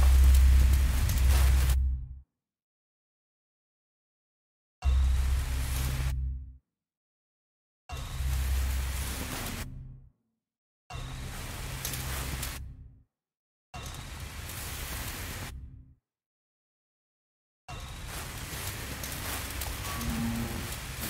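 A flare hisses and crackles steadily as it burns.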